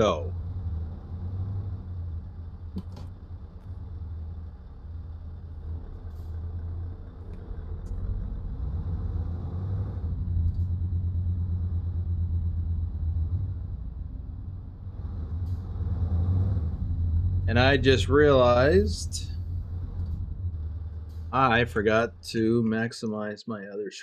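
A truck engine rumbles low and steadily.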